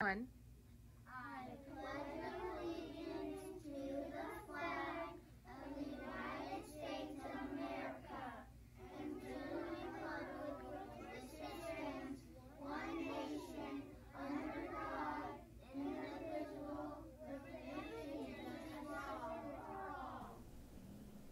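A group of young children recite together in unison, close by.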